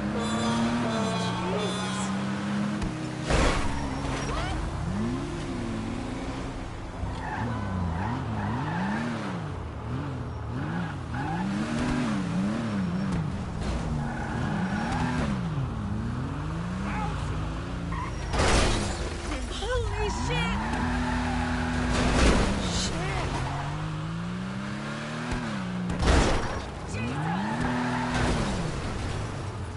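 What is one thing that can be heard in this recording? A car engine revs up and down as it drives.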